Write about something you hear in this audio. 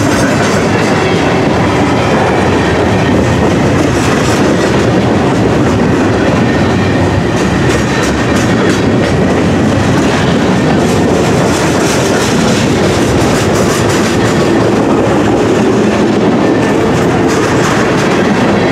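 Steel wheels clack and squeal over the rails.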